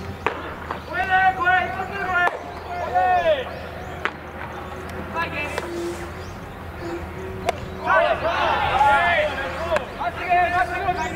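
Young men shout and chant with energy nearby.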